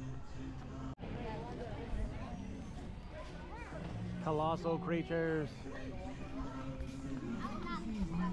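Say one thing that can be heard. Women and children talk and call out nearby outdoors.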